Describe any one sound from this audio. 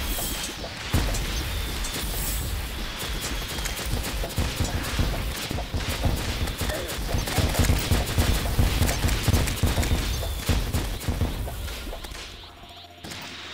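Rapid game weapon shots and small blasts crackle loudly and densely.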